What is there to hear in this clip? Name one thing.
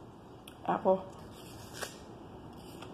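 A woman bites into an apple with a crunch.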